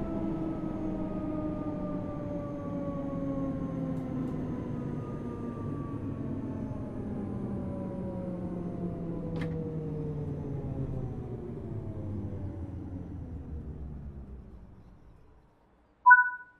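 Train wheels rumble on the rails and fade away.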